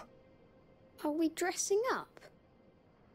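A young boy asks a question in a soft voice.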